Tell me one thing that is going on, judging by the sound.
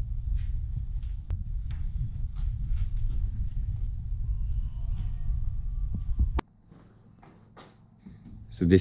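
An elderly man talks calmly, close by.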